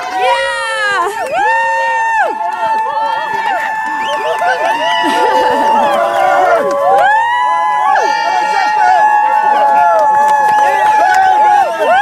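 A crowd of young people cheers and shouts loudly close by.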